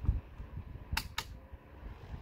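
A dial on a small fan clicks twice.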